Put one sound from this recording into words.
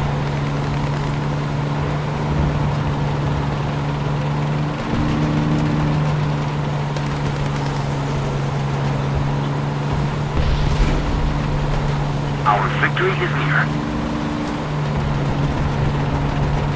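A tank engine drones as the tank drives.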